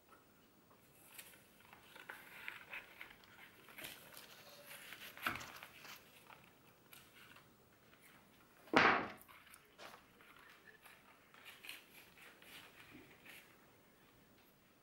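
Leaves and stems rustle as they are handled.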